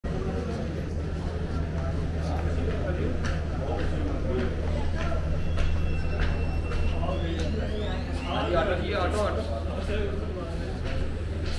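A crowd of men and women chatter in the background.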